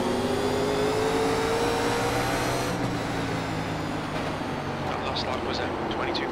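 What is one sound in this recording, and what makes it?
A race car engine roars at high revs, its pitch slowly rising.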